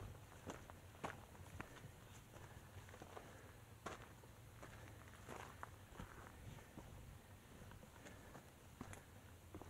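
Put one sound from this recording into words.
Footsteps crunch on dry, rocky ground.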